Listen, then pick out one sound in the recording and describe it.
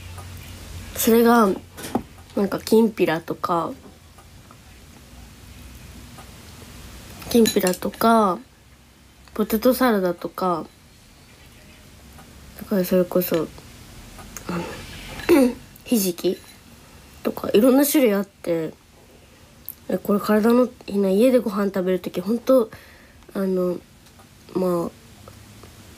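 A young woman speaks softly and close to a microphone, in short phrases with pauses.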